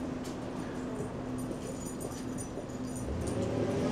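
A dog's tags jingle softly as it walks.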